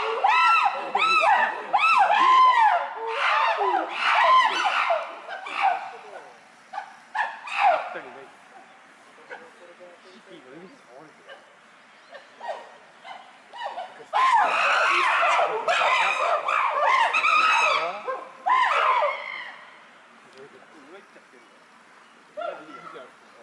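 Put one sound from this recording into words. Chimpanzees scream and hoot loudly in bursts.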